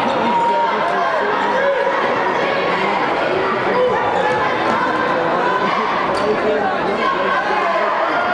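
A basketball bounces on a floor.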